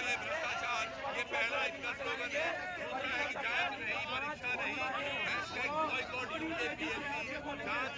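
A large crowd of young men chants and shouts loudly outdoors.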